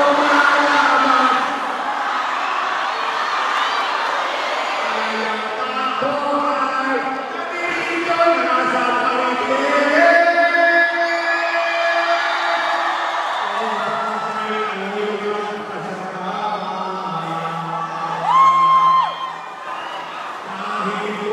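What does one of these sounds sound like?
A man sings loudly through a microphone over loudspeakers.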